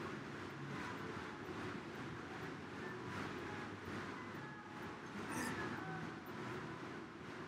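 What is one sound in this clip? An air bike's fan whirs steadily.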